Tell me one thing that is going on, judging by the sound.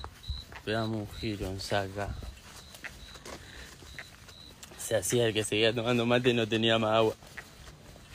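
A young man sings loudly close to a phone's microphone.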